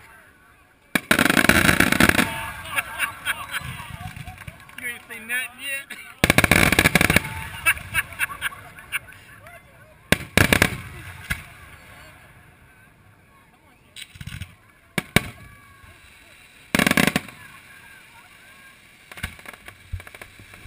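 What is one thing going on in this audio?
Fireworks burst outdoors with loud booms and crackles.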